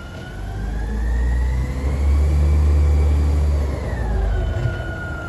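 A garbage truck's diesel engine rumbles loudly as the truck drives closer.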